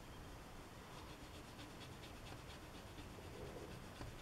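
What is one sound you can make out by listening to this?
A brush softly scratches across paper in short strokes.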